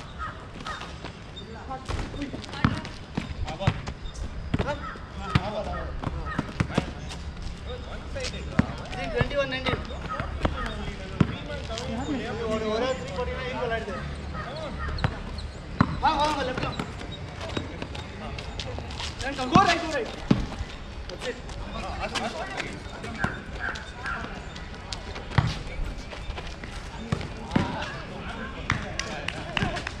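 A basketball bounces on a hard court outdoors.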